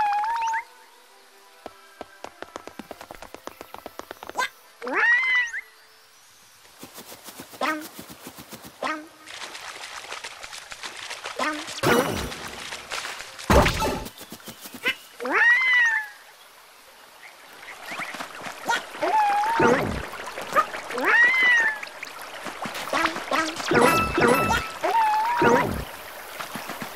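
A small cartoon creature chirps and yelps in short, high bursts.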